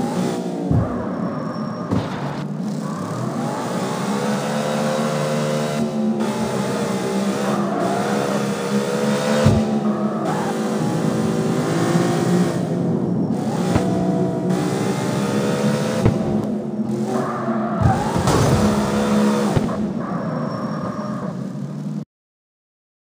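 A car engine revs up and down as the car speeds along.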